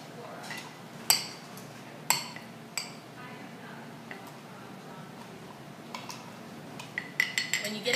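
A muddler thumps and grinds against the bottom of a glass.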